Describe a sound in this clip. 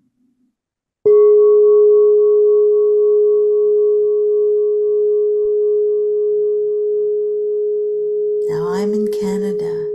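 A crystal singing bowl is struck and rings with a long, steady tone.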